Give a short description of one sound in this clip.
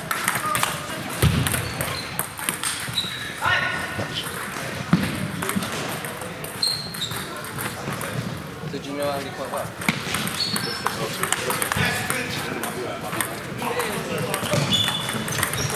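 A table tennis ball clicks back and forth between paddles and a table.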